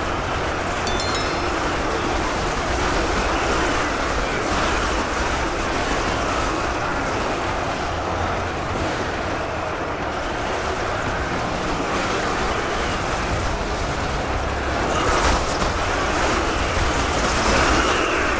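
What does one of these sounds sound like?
A vast battle rages with a constant roaring din of clashing weapons.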